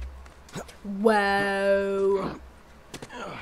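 A man grunts with effort while climbing.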